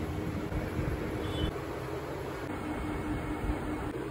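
A ceiling fan whirs steadily.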